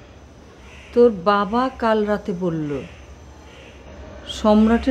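A middle-aged woman speaks nearby in a tense, serious voice.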